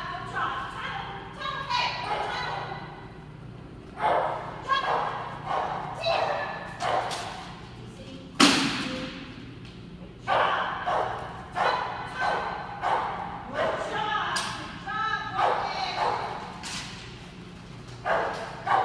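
An older woman calls out commands with animation in an echoing hall.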